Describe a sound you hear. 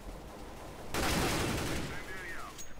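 A rifle fires a short burst of shots.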